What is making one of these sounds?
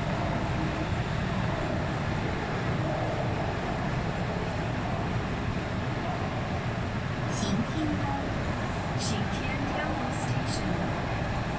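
A subway train rumbles and roars steadily along the tracks.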